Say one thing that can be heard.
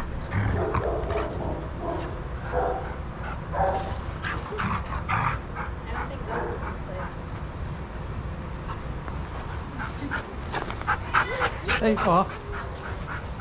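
Dogs growl playfully at close range.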